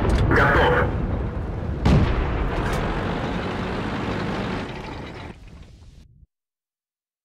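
A tank engine rumbles loudly.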